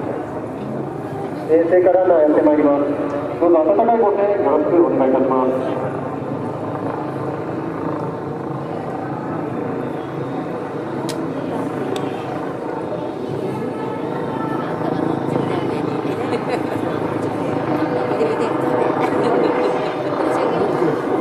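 A vehicle drives up the road, its engine growing louder as it nears.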